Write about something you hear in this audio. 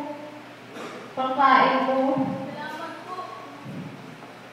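A young girl speaks into a microphone, heard through loudspeakers in a large echoing hall.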